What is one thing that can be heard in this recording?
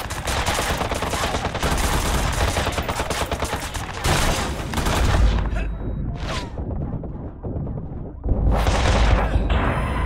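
A loud explosion booms and fades.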